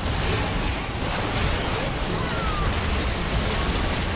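A structure collapses with a loud crash.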